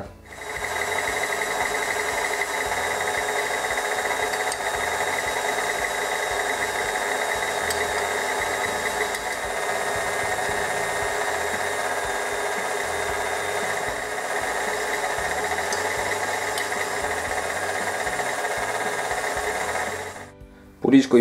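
A stand mixer whirs as its flat beater churns through stiff dough.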